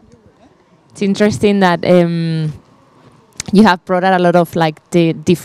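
A woman speaks clearly and with animation, close by.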